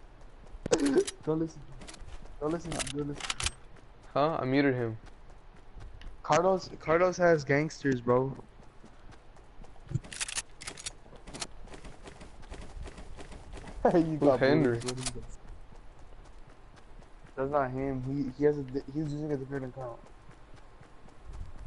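Footsteps patter quickly on grass.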